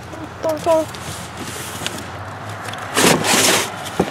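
A cardboard box scrapes and thumps as it is handled.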